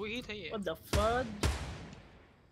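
A rifle fires twice with loud cracks that echo away.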